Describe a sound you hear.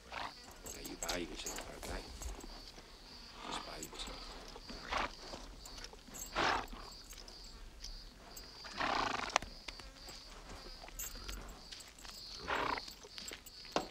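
A horse snorts and blows nearby.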